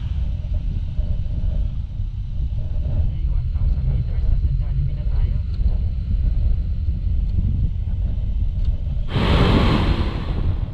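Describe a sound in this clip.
A motorcycle engine rumbles steadily while riding.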